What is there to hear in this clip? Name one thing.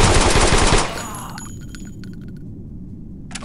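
Spent shell casings clink on the ground.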